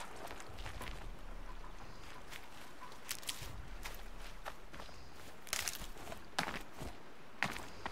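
Leafy plants rustle as they are pulled up.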